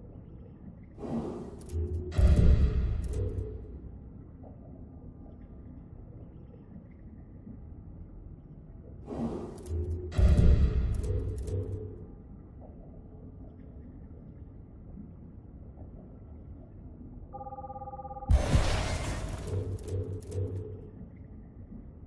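A game menu plays whooshing, booming sound effects as selections are made.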